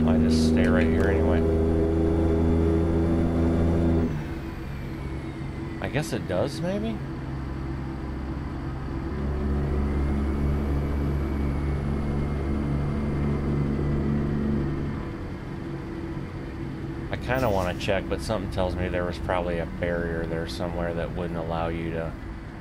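A heavy truck engine drones steadily, rising and easing off.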